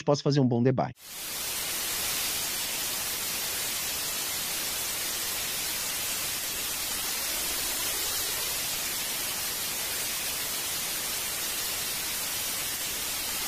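Loud static hisses steadily.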